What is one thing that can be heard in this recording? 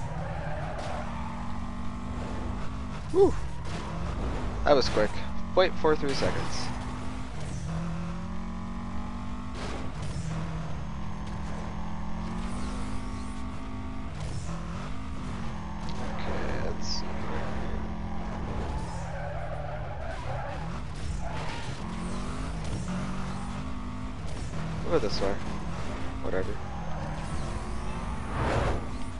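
A racing car engine roars steadily at high speed, its pitch rising and falling with the gears.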